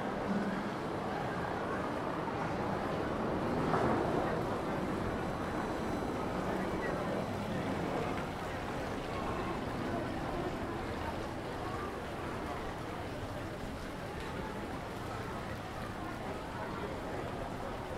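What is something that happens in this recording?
A crowd chatters outdoors in the distance.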